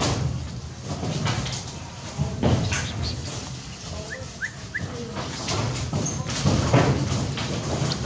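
A monkey pads across concrete close by.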